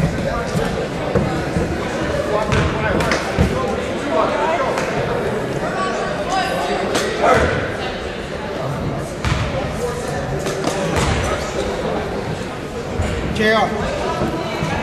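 Many voices chatter, echoing in a large hall.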